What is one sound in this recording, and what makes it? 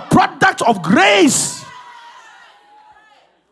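A man shouts with energy through a microphone, echoing around a large hall.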